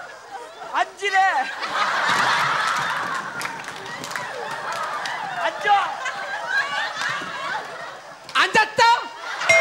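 A crowd of women laughs loudly.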